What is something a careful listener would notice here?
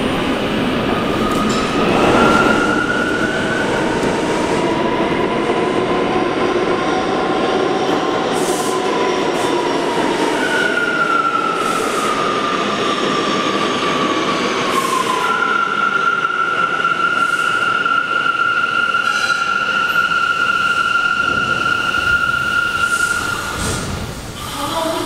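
A subway train hums and whines at a platform in an echoing station.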